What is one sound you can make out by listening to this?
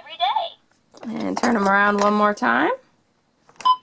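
A toy's electronic voice speaks in a cartoonish tone through a small speaker.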